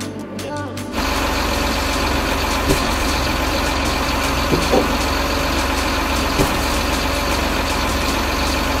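A forestry machine's diesel engine hums steadily.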